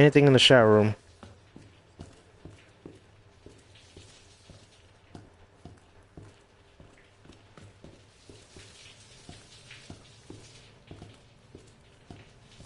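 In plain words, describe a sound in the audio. Footsteps tread slowly and evenly on a hard floor.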